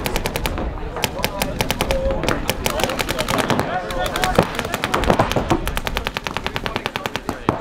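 Paintball markers fire in rapid popping bursts outdoors.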